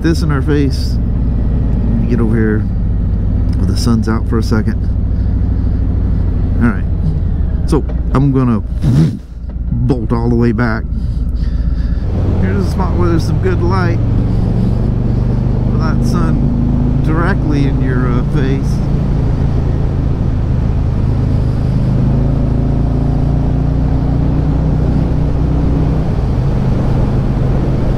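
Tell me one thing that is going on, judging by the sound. A motorcycle engine rumbles steadily while riding.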